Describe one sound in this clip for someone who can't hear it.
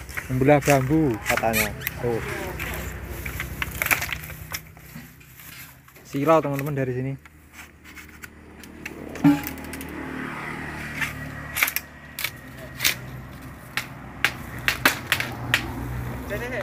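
Bamboo poles knock and clatter as they are chopped and pulled loose.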